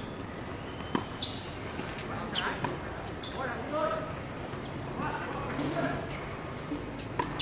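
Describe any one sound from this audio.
Tennis rackets strike a ball back and forth outdoors.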